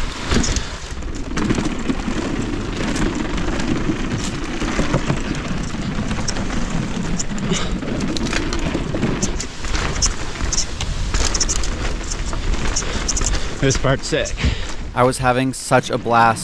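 Bike tyres roll and rattle over wooden boardwalk planks.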